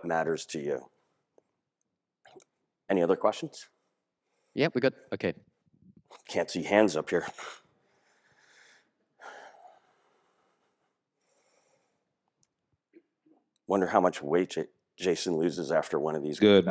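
A man speaks with animation through a microphone, with pauses, in a large hall.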